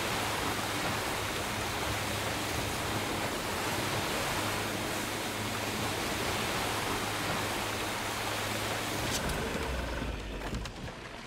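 Water churns and splashes behind a boat.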